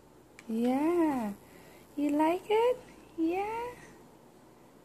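A baby babbles in short, rising and falling sounds close by.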